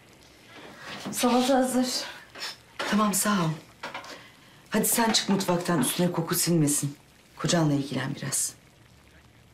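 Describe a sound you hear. A middle-aged woman speaks in a strained, emotional voice, close by.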